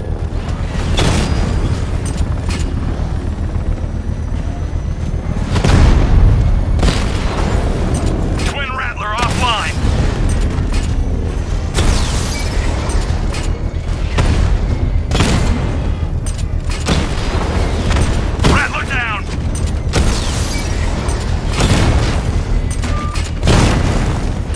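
Explosions boom loudly now and then.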